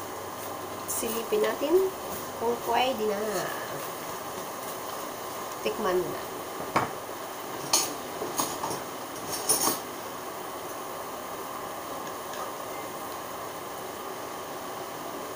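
A spatula scrapes and stirs food in a wok.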